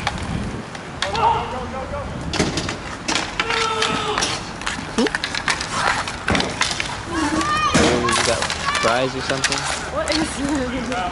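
Young men shout to each other across the rink.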